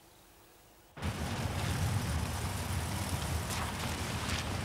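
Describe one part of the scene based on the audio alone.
A car engine hums as tyres roll over a wet path.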